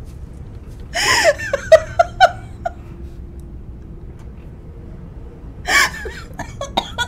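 A young woman squeals and exclaims excitedly into a microphone.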